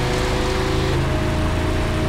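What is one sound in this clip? A car engine shifts gear with a sudden change in pitch.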